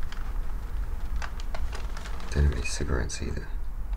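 A newspaper rustles.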